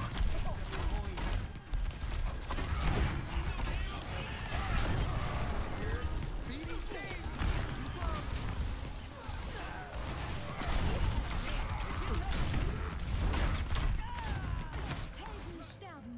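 Weapons fire in rapid bursts of shots.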